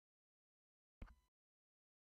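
A turntable tone arm clicks as it returns to rest.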